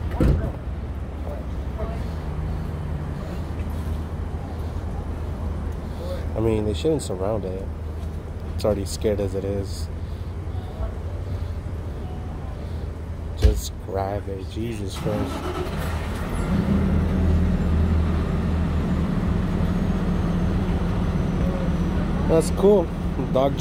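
A low engine idles steadily.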